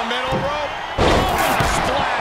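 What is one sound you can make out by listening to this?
A heavy body slams onto a wrestling ring mat with a thud.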